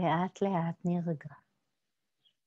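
A woman speaks calmly and softly close to a microphone.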